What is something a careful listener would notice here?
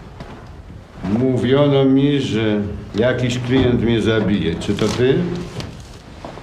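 A man speaks in a low, calm voice up close.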